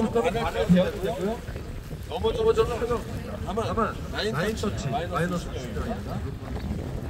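A man speaks loudly and with animation close by.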